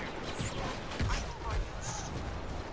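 An explosion bursts nearby with a low boom.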